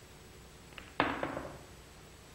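A cue strikes a ball with a sharp knock.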